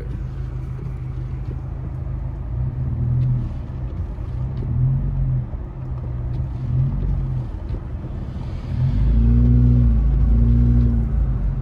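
A windshield wiper swishes across the glass.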